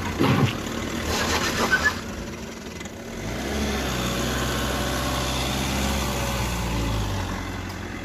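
A car engine hums as a car rolls slowly.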